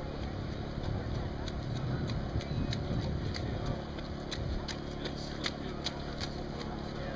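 A runner's footsteps slap on wet pavement, coming closer and passing by.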